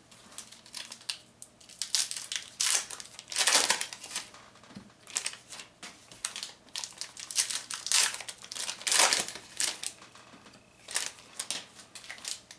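Cards rustle and slide against each other as hands shuffle through them.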